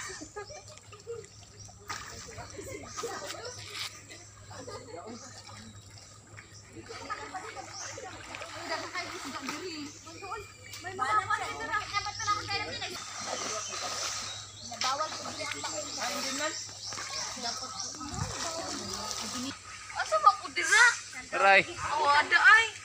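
Children and young people talk and call out nearby, outdoors.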